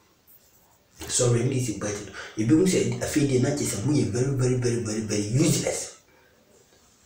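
A young man speaks with animation close to the microphone.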